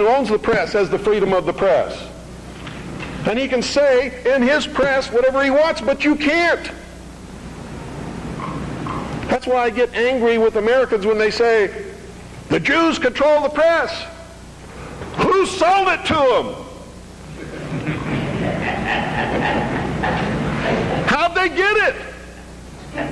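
A middle-aged man speaks with animation into a microphone, his voice rising at times.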